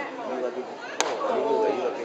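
A metal bat cracks sharply against a baseball.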